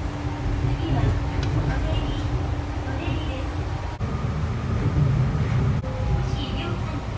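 A train rumbles steadily along a track.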